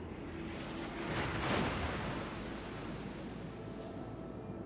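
Heavy shells crash into the water with loud splashes.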